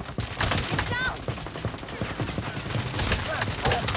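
Rapid gunfire cracks out in bursts.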